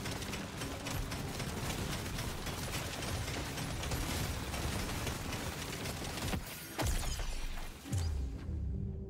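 Rapid gunfire and crackling hits clatter in a dense, busy stream.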